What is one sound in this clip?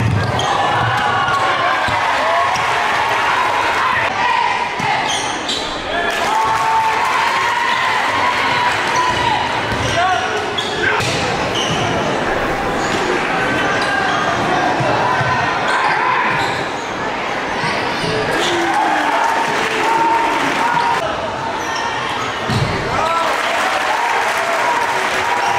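A crowd cheers and murmurs in a large echoing gym.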